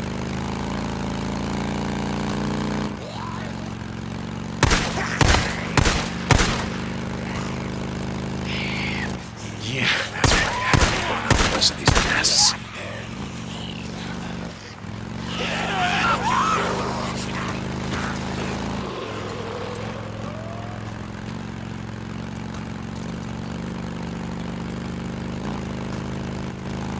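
A motorcycle engine hums steadily.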